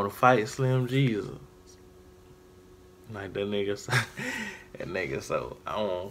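A young man laughs close to a microphone.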